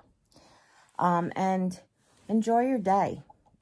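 A woman speaks close by with animation, in a high, sing-song voice.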